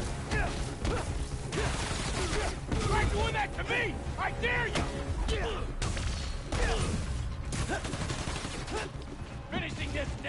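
Punches and kicks thud in a fast brawl.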